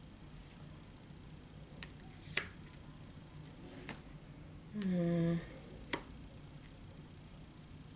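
Cards slap softly onto a table.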